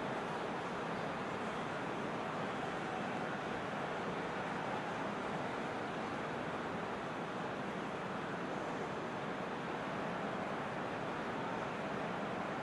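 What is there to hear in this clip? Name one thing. A large crowd murmurs and cheers steadily in a stadium.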